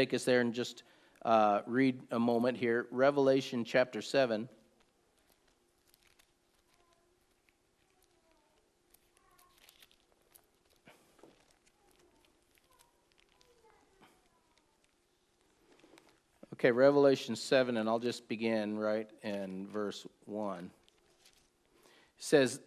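A middle-aged man speaks calmly and slowly into a close microphone.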